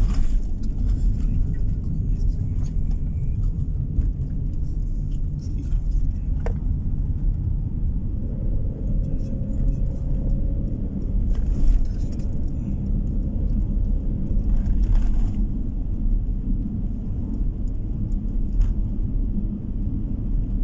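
A vehicle's tyres rumble steadily on an asphalt road.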